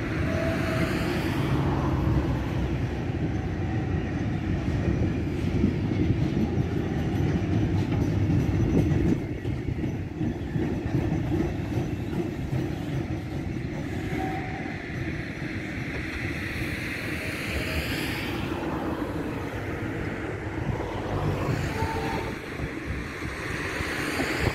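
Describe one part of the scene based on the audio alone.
Steel wheels squeal on the rails.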